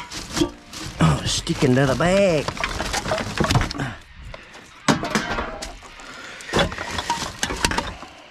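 A plastic bin bag rustles and crinkles as a hand rummages through it.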